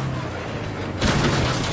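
A vehicle lands with a heavy thud.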